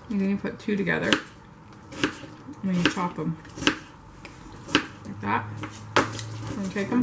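A knife chops sharply on a cutting board.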